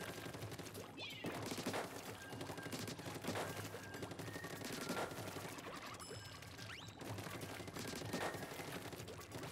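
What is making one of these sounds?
Game sound effects of paint blasts splat and burst.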